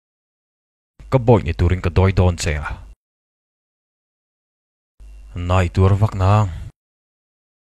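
A man speaks quietly and close.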